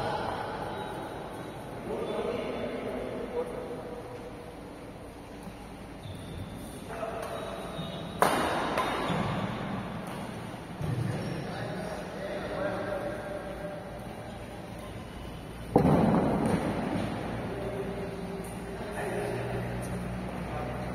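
Rackets smack a shuttlecock in a large echoing hall.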